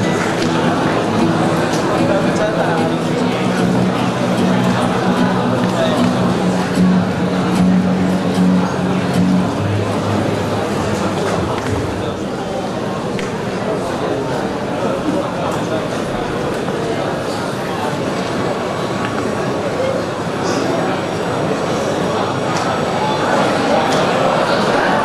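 A large audience chatters and murmurs in an echoing hall.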